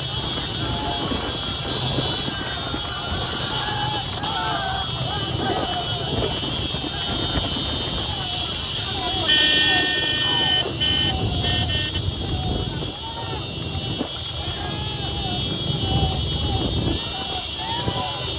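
Cart wheels rumble over a paved road.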